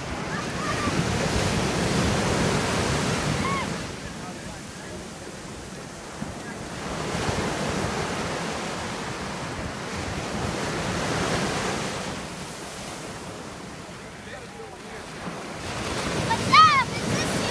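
A boy splashes through shallow water.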